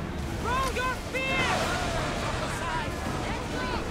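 A man shouts an order through the wind.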